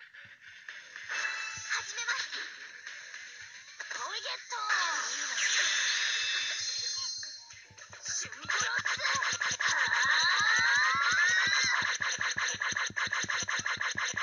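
Magical sound effects whoosh and sparkle during an attack.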